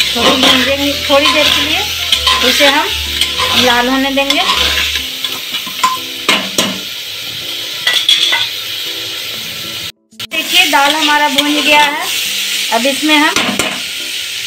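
A metal spatula scrapes and stirs food in a metal pot.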